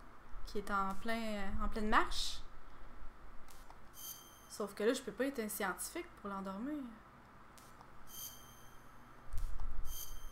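Short electronic beeps chime as a game menu is browsed.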